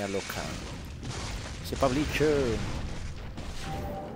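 A burst of fire roars and crackles.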